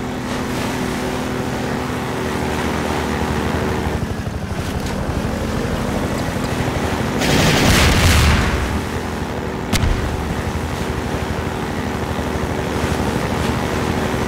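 A buggy engine hums steadily as it drives.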